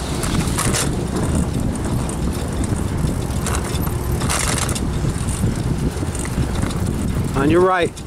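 Bicycle tyres hum on smooth pavement.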